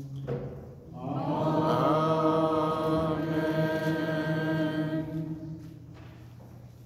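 A choir sings a sustained chant in a large echoing church.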